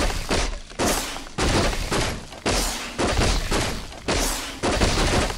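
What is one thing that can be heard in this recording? Magic bolts whoosh and crackle in bursts.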